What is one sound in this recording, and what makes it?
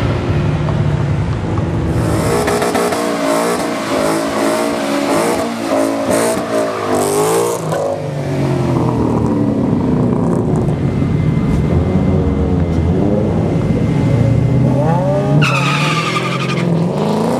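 A V8 muscle car engine revs hard.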